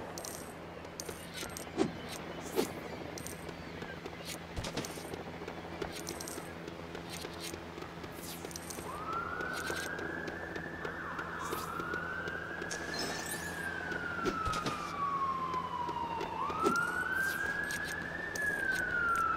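Short bright chimes ring as coins are picked up.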